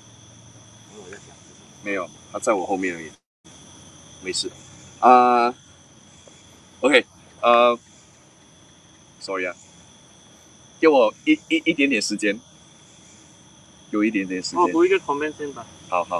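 A man speaks in short bursts, with pauses.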